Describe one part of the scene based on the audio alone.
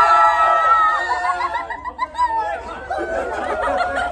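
Young women laugh and chatter excitedly nearby.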